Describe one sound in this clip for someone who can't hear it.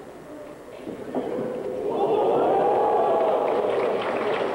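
A large arena crowd roars with cheers.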